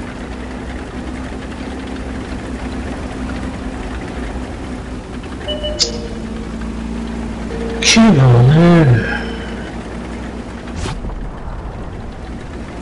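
A tank engine rumbles steadily at low pitch.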